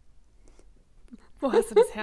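A young woman laughs through an online call.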